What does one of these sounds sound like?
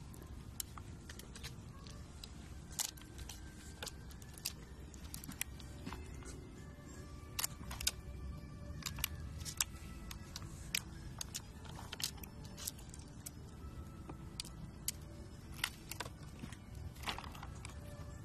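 A squirrel rummages among nuts, with small clicks and taps against metal bowls.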